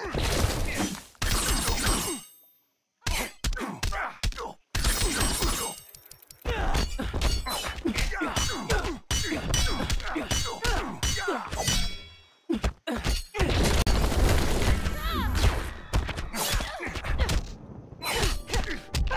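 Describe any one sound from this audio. Punches, kicks and energy blasts hit hard in quick bursts.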